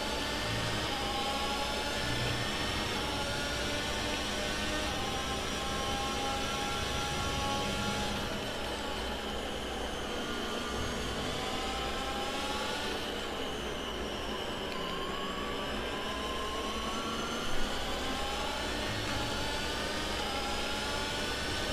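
A racing car engine screams at high revs, rising through the gears.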